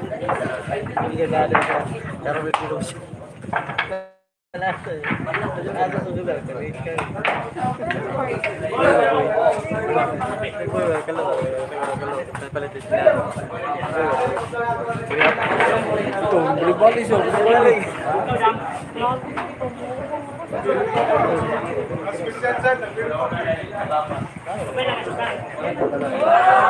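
Several men and women chatter nearby in a lively crowd.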